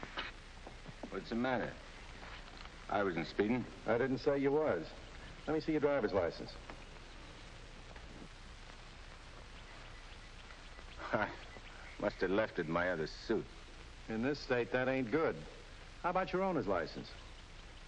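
A man speaks firmly and calmly, close by.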